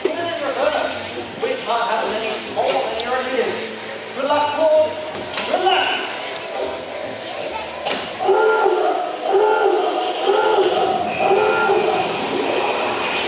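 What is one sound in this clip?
A man speaks with animation over a loudspeaker, echoing outdoors.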